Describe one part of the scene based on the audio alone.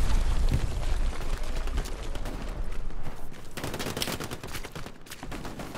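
Footsteps run quickly over wet, muddy ground.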